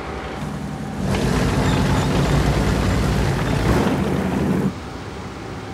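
A tank engine rumbles loudly as the tank drives.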